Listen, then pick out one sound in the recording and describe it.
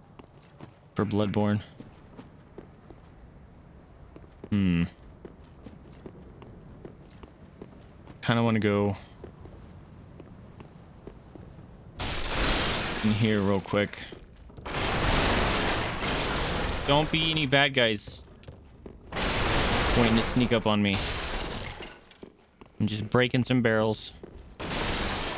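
A young man talks into a microphone close by, in short bursts.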